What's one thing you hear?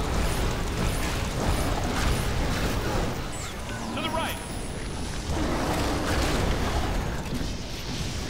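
A fiery creature crackles and roars.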